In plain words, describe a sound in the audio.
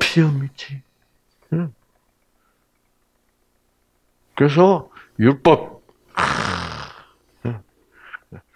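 An elderly man speaks into a microphone over a loudspeaker, in short bursts with pauses.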